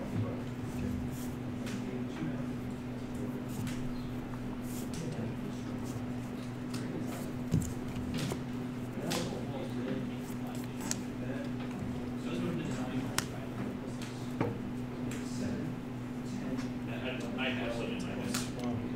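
Playing cards slide and tap softly on a mat.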